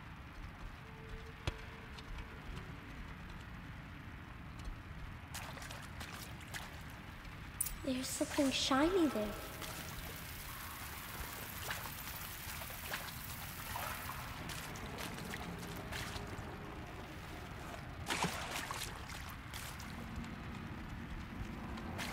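Footsteps patter quickly over damp ground.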